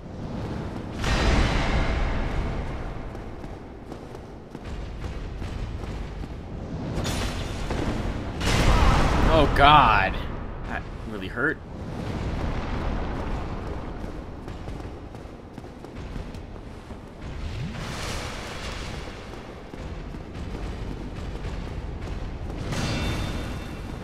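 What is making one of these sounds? A sword clangs against a large shield.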